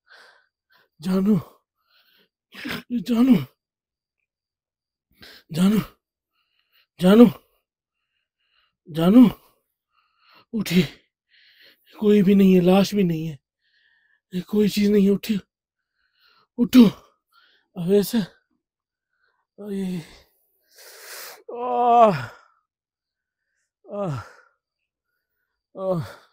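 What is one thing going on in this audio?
An elderly man calls out loudly in short bursts, close by.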